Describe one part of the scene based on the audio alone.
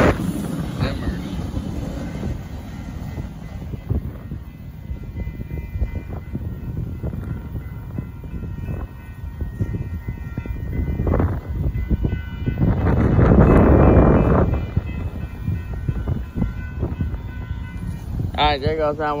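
A railway crossing bell rings steadily.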